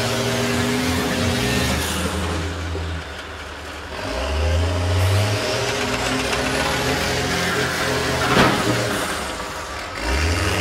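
Bus engines rumble and rev loudly outdoors.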